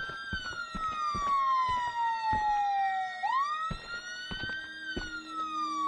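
Heavy footsteps thud slowly on a hard road.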